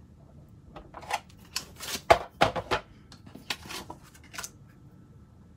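A plastic plate clicks and clatters into place.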